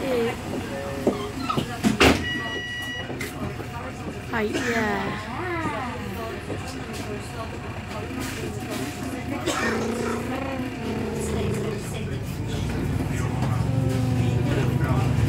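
A bus engine rumbles, then revs up as the bus pulls away.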